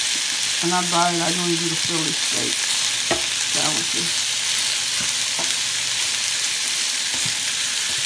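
A spoon scrapes against a pan.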